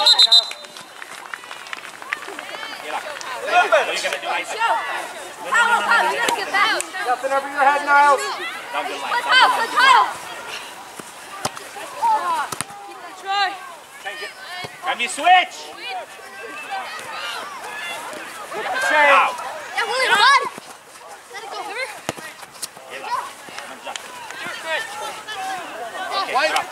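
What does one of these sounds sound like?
Young players and a man shout across an open field outdoors.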